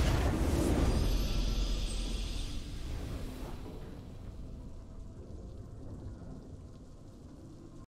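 Triumphant game music swells and fades.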